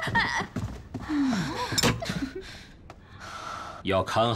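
A young woman complains with animation, close by.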